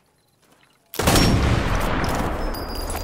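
A rifle fires a single loud shot that echoes off rock walls.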